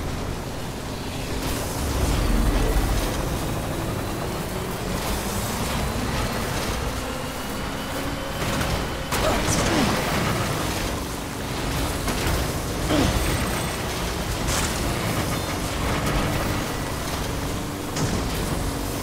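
Truck wheels bump and clatter over rocks.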